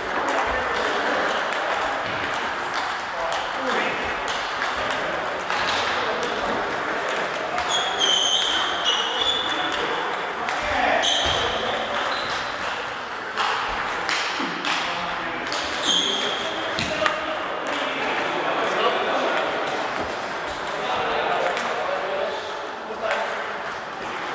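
Table tennis balls click and bounce on tables throughout a large echoing hall.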